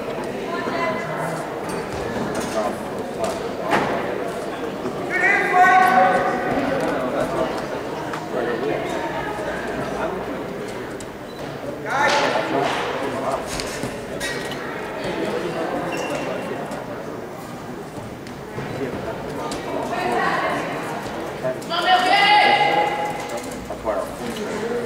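Shoes scuff and squeak on a wrestling mat.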